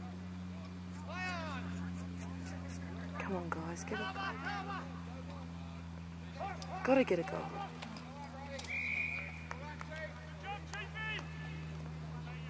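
Players shout to each other outdoors across an open field.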